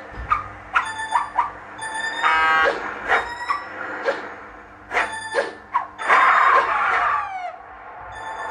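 Bright game chimes ring out quickly as coins are collected.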